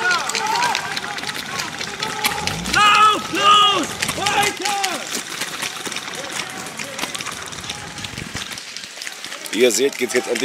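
Airsoft guns fire in rapid snapping bursts.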